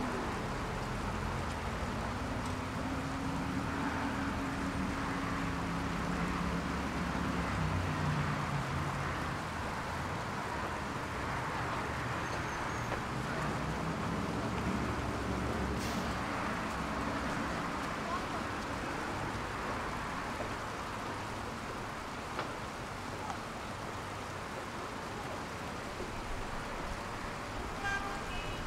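Water splashes steadily from small fountains.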